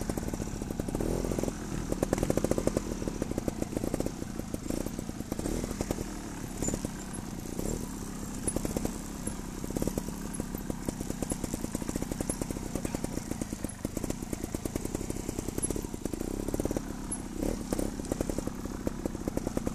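A trials motorcycle engine revs and putters.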